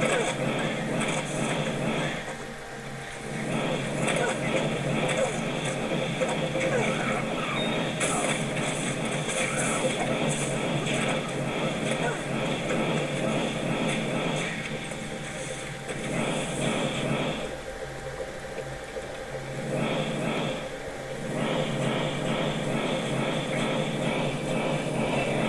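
Fireballs whoosh through the air.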